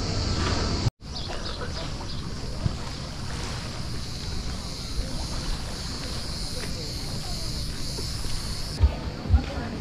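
Small waves lap gently on a pebbly shore.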